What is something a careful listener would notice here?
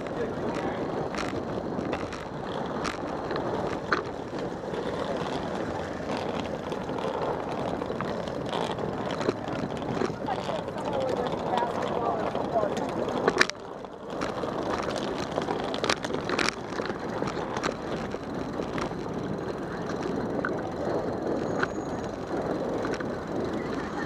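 Footsteps of many people shuffle and tap on pavement close by.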